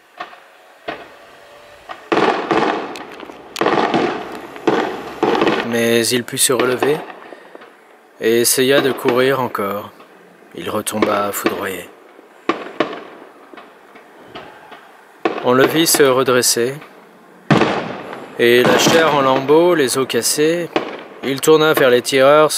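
Fireworks crackle and fizz overhead.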